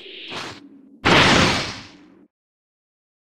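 A loud whoosh rushes past.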